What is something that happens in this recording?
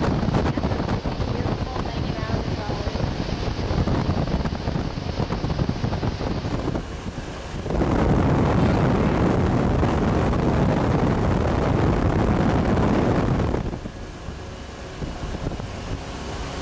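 Wind buffets the microphone on a fast-moving boat.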